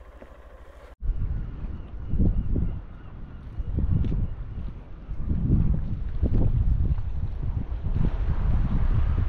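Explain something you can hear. Wind gusts loudly outdoors.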